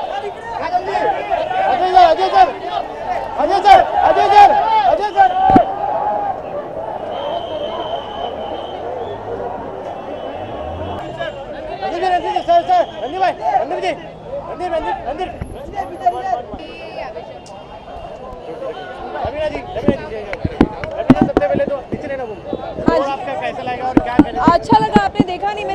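A crowd of people chatters loudly nearby.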